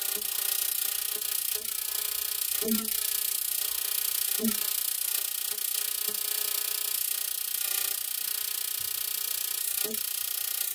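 A small gas flame hisses steadily.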